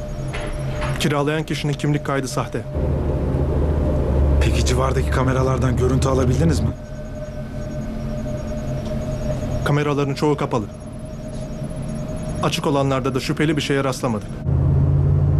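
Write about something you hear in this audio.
A young man talks on a phone in a tense voice.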